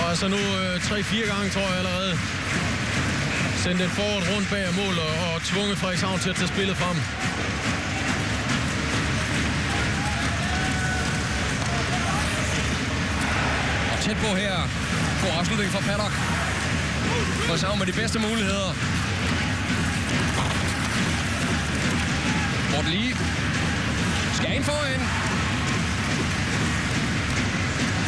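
A crowd roars and cheers in a large echoing arena.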